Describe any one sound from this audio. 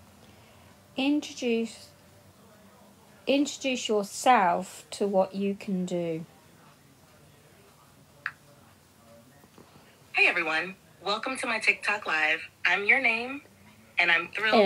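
A middle-aged woman talks casually close to a phone microphone, with pauses.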